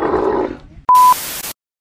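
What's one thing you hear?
A steady high test tone beeps briefly.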